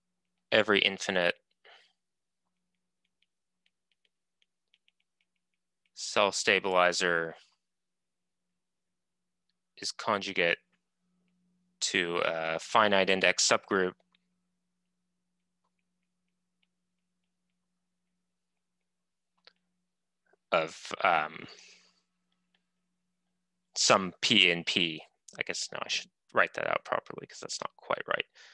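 A man lectures calmly over an online call, speaking in short bursts with pauses.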